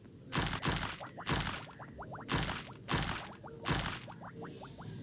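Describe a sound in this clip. Bright sparkling game chimes ring out in quick bursts.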